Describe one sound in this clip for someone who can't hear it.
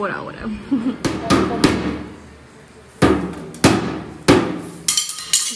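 A small boy beats a toy drum with a stick.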